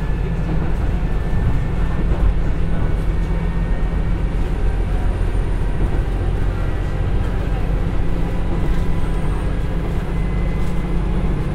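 A diesel train engine rumbles steadily while the train moves along.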